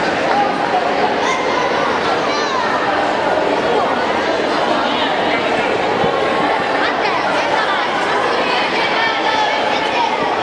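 A man speaks loudly through a microphone and loudspeakers in a large echoing hall.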